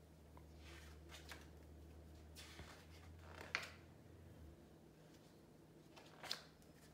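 A paper card rustles in a woman's hands.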